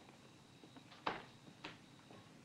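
A woman handles objects with sharp knocks and clicks.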